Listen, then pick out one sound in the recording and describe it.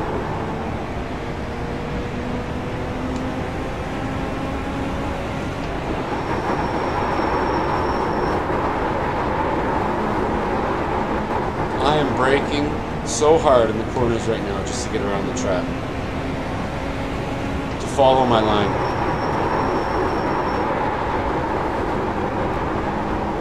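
A race car engine drones steadily and shifts in pitch.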